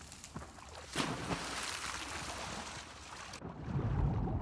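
Water churns and rushes.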